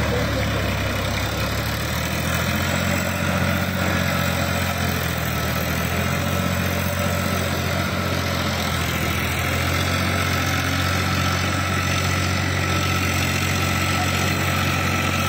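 A tractor engine drones steadily up close.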